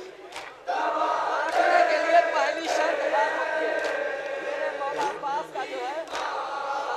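A young man chants with passion through a loudspeaker, his voice echoing outdoors.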